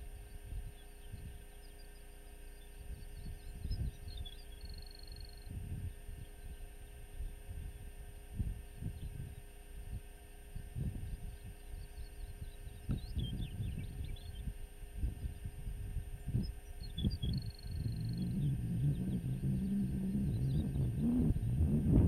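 Wind gusts across open ground outdoors, buffeting and rumbling, growing stronger toward the end.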